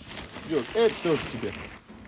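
Packing paper rustles and crinkles close by.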